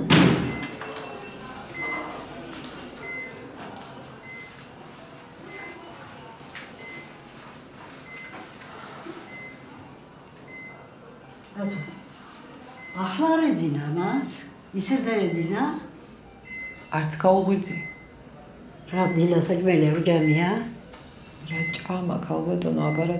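A heart monitor beeps steadily.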